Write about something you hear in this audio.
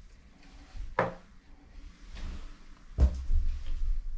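Small plastic clicks and knocks as wires are handled.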